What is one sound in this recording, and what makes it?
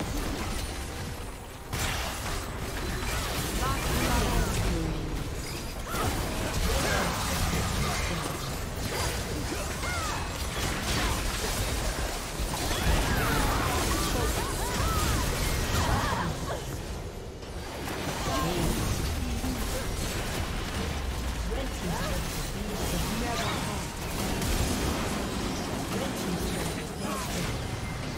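Game spell effects, hits and explosions clash in a busy fight.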